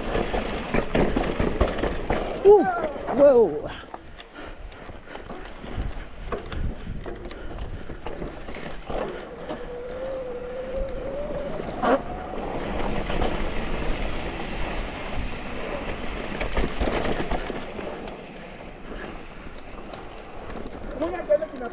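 Bike tyres crunch and rattle over rocky dirt.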